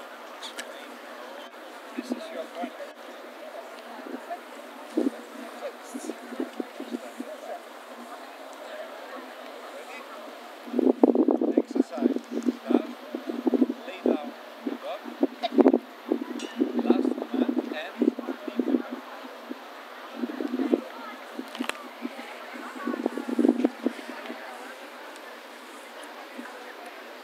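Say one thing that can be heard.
A crowd murmurs softly in the distance.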